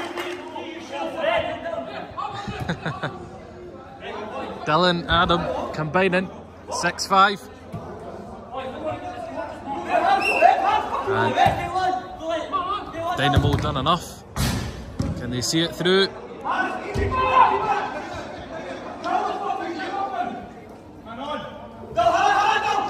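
Young men shout and call to each other in a large echoing hall.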